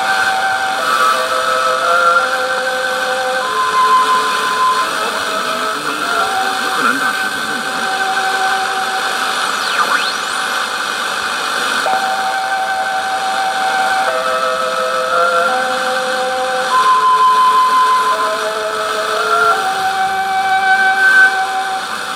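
A portable radio plays a slow melody of steady tones through a small speaker, with a hissing background.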